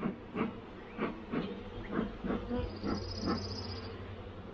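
A bee smoker puffs in short bursts.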